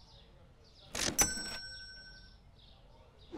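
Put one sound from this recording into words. A cash register drawer rings open with a chime.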